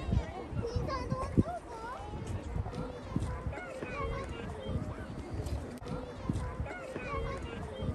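Water ripples and laps gently.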